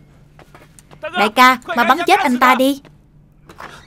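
A man cries out loudly in distress.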